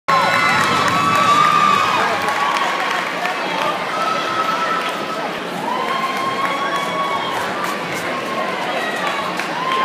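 A crowd cheers and screams loudly in a large echoing gym.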